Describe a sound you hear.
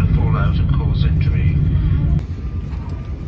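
A jet airliner's engines rumble loudly and steadily.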